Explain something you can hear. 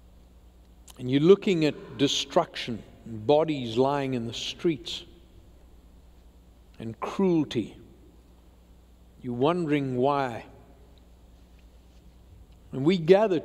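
An elderly man speaks slowly and calmly through a microphone, with long pauses.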